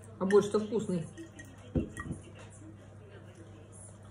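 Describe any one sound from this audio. A young woman slurps soup from a spoon.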